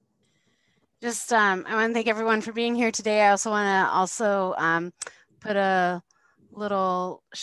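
A woman talks steadily over an online call.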